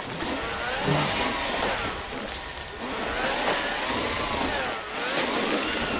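A small vehicle's electric motor whirs, rising and falling in pitch.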